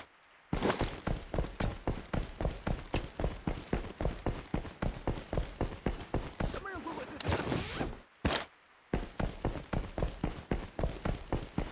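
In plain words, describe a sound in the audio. Footsteps walk quickly and steadily across a hard metal floor.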